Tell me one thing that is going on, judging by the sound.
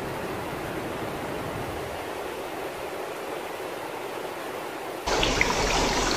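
Rushing water splashes steadily over rocks.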